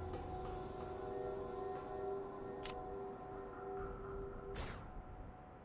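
Soft game music plays with steady held notes.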